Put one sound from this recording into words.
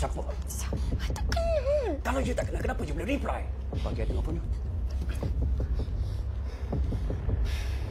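A young woman sobs and cries out in distress.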